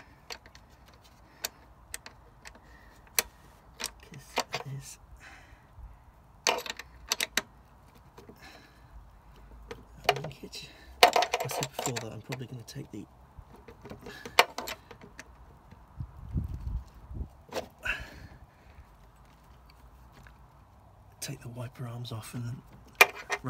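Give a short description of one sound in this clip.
A metal wrench clicks and clinks against engine parts.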